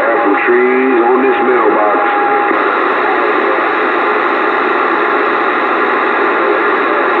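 A radio hisses with steady, rough static.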